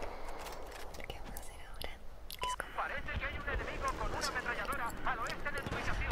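Gunfire from a mounted machine gun rattles rapidly.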